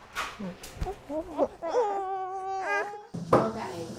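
A little girl whines and cries.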